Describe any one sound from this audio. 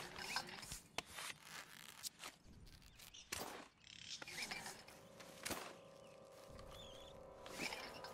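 Footsteps crunch through dry brush and leaves.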